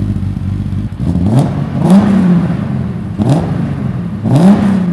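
A car engine revs sharply several times.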